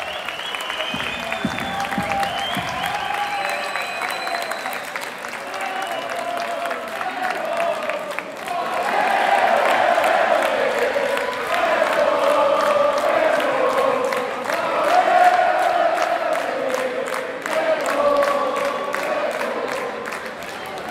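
Electric guitars play a loud melody.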